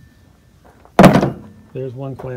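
A wire rack clatters onto a hard plastic surface.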